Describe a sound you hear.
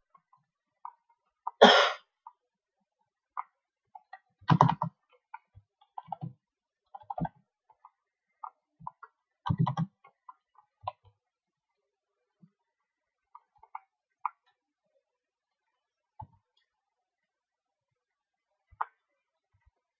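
Short computer game sound effects click and chime now and then.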